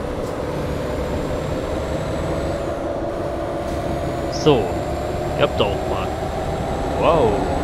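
A truck engine hums steadily as the truck drives along.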